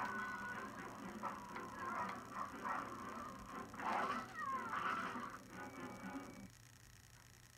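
Thuds and scuffling of a fight play through a television speaker.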